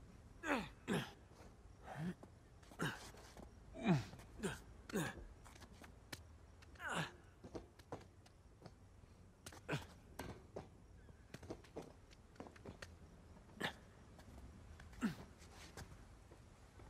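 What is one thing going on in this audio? Hands slap and grab onto stone ledges.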